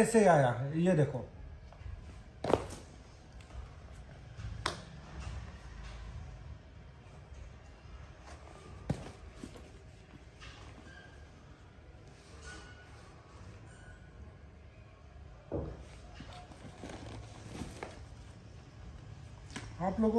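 Shoes knock and rustle.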